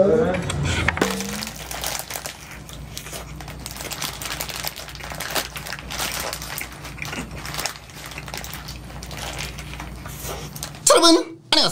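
A young man chews and munches food noisily.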